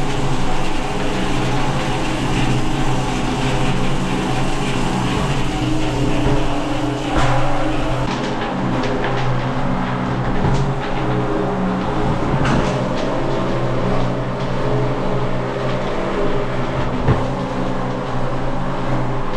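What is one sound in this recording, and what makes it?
Grains crackle and rattle against the grinder.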